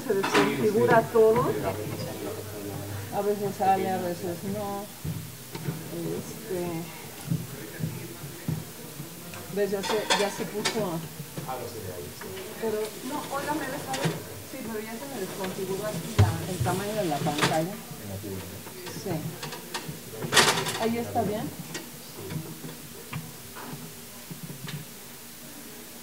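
A man speaks to an audience in a large echoing hall.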